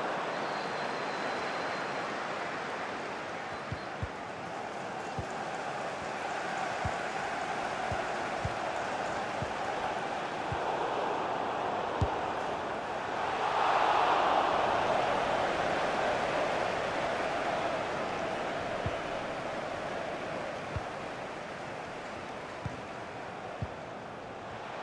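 A large stadium crowd roars steadily and swells loudly near the goal.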